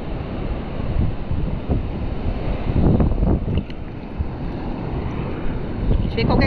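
Water sloshes and laps close by, outdoors on open sea.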